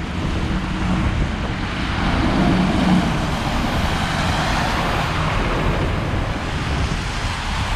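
City traffic hums steadily.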